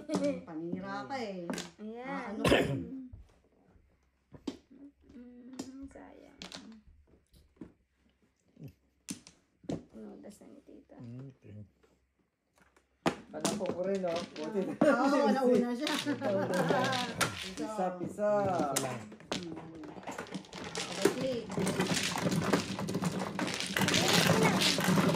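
Plastic tiles click and clack on a table.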